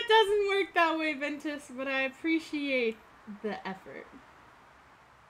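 A young woman talks animatedly and laughs into a close microphone.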